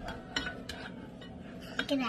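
A wooden spoon stirs food in a pot.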